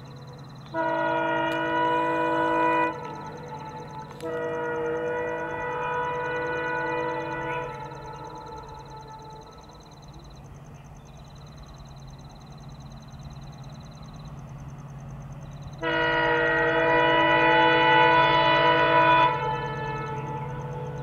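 A diesel locomotive engine rumbles steadily as the train approaches.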